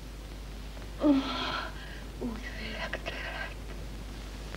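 A woman sighs softly up close.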